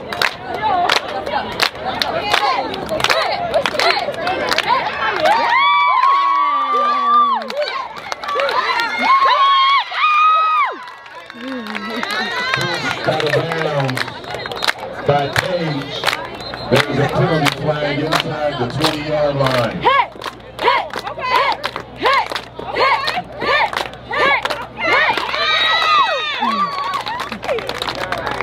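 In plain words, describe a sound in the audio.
A crowd of young women claps and cheers loudly outdoors.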